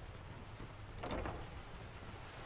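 A heavy wooden door swings shut with a thud.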